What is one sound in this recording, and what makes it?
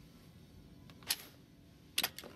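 A push button on a control panel clicks as it is pressed.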